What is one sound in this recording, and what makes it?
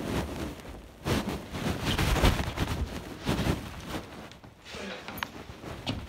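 Footsteps thud on carpeted stairs.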